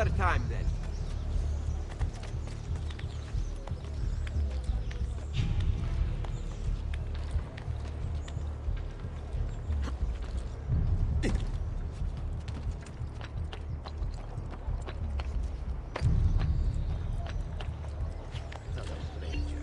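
Footsteps patter quickly across hard ground and rooftops.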